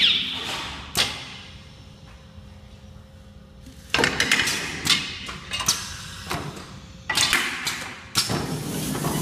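Metal parts of a machine clack and snap.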